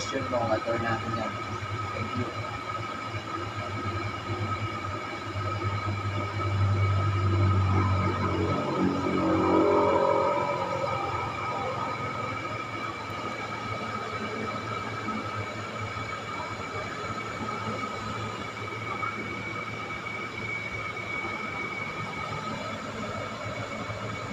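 A spinning wheel whirs steadily.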